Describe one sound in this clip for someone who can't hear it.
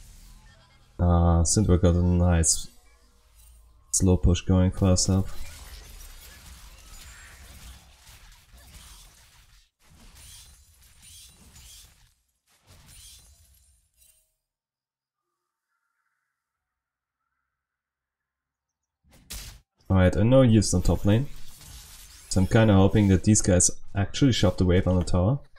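A young man talks with animation through a microphone.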